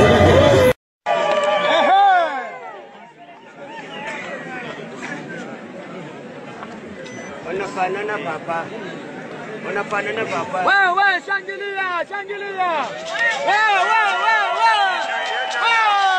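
A man speaks loudly through a microphone and loudspeaker.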